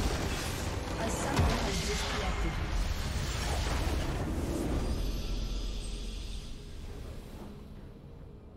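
A loud magical blast booms and crackles, then fades away.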